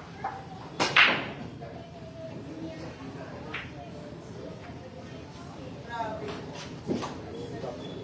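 Billiard balls click against each other and roll across the table.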